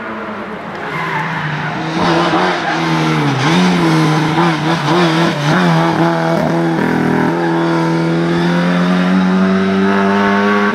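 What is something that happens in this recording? A rally car engine approaches, roaring loudly as it speeds past.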